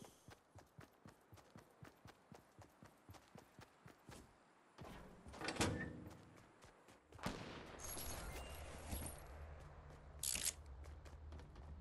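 Footsteps run quickly and steadily.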